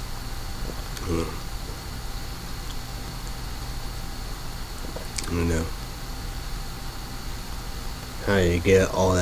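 A man speaks calmly and briefly, close to a microphone, with long pauses.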